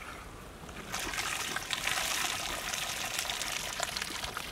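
Rice pours into a pot of bubbling water with a splashing hiss.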